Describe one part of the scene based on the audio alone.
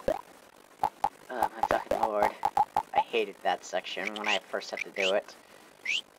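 Short menu blips click as options are chosen.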